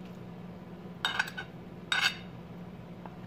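A metal utensil scrapes and clinks against a plate.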